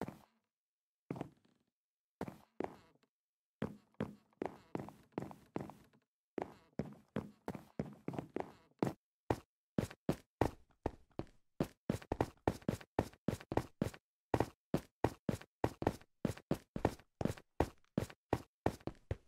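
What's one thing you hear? Footsteps tap quickly and evenly on hard stone.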